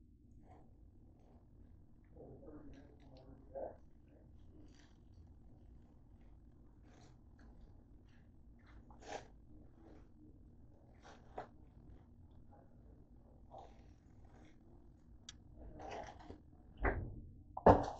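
A plastic bag crinkles and rustles as it is handled nearby.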